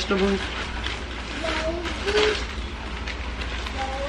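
Water bubbles at a rolling boil in a pot.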